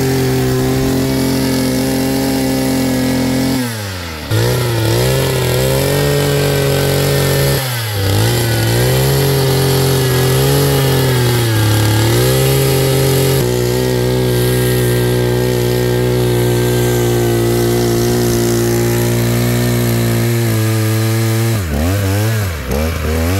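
An earth auger grinds into dry soil.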